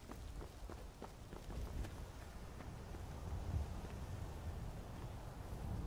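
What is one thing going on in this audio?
Footsteps crunch on stone and grass.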